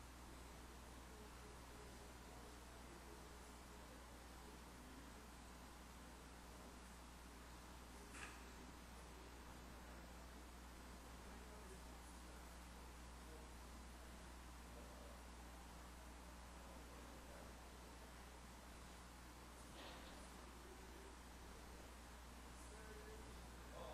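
A few men and women murmur quietly across a large hall.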